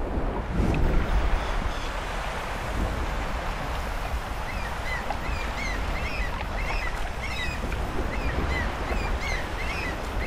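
Waves wash gently onto a shore.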